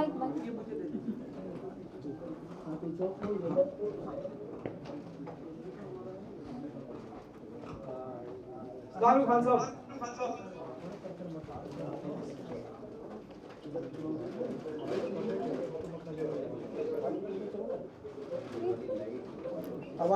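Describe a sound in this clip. A man speaks through an online call, heard through a laptop's speaker.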